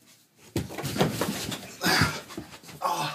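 Footsteps thud down carpeted stairs.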